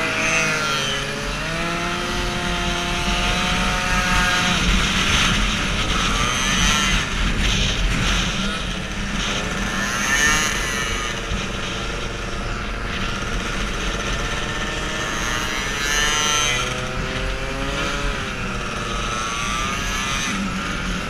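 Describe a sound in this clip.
A scooter engine hums and revs up close.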